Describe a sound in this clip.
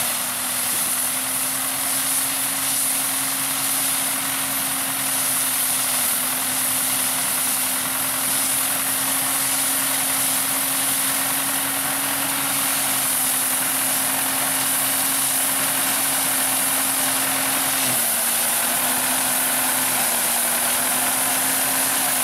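A combine harvester rattles and clatters as it cuts grain.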